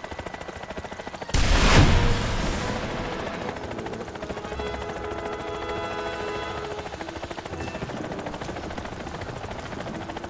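Helicopter rotor blades thump steadily and loudly.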